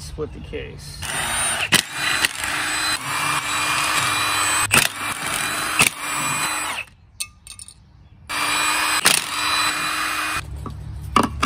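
An impact wrench whirs and rattles loudly in bursts.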